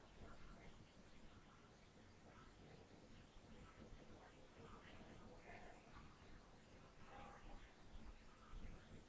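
An eraser rubs across a whiteboard.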